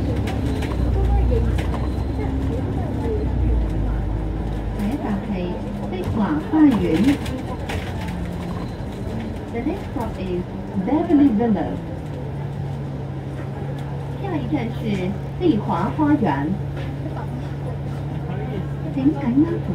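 A bus engine rumbles and hums steadily.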